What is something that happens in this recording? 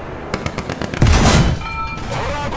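A cannon fires with a loud, sudden boom.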